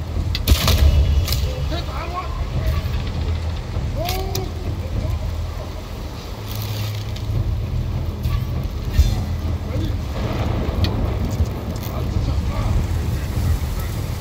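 Flames crackle and burn.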